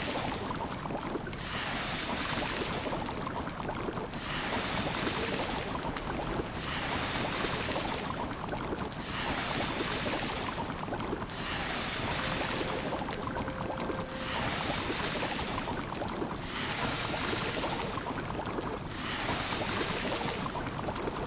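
A fire crackles and hisses steadily.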